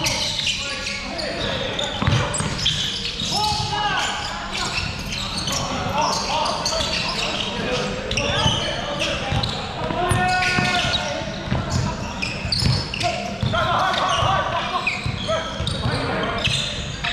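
Sneakers squeak sharply on a hardwood floor, echoing in a large hall.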